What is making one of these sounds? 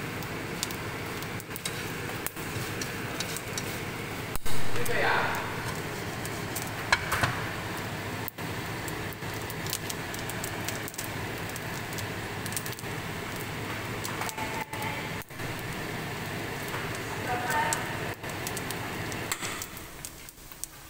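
Fish sizzle and crackle as they fry in hot oil.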